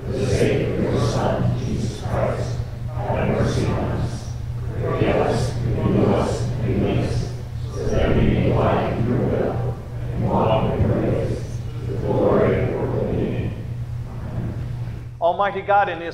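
A group of men and women read aloud together in unison.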